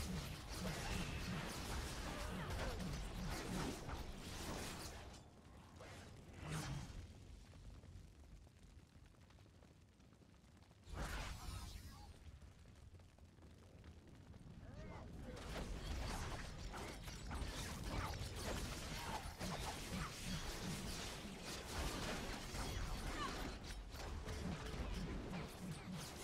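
Game combat sounds of spells and blows clash rapidly.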